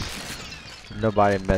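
A young man speaks excitedly into a close microphone.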